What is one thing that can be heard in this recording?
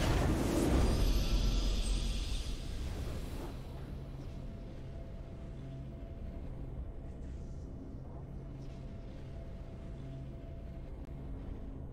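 A victory fanfare plays with a steady musical drone.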